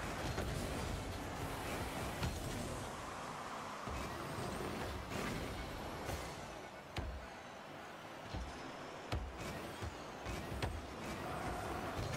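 A ball thuds when a car hits it.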